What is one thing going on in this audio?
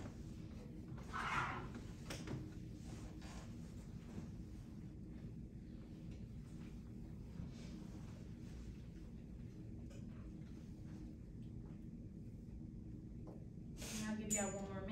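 A woman speaks calmly to a room, a little way off.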